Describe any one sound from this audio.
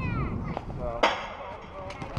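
A metal bat cracks sharply against a baseball.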